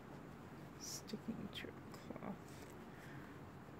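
Soft fabric rustles and crinkles as hands handle it.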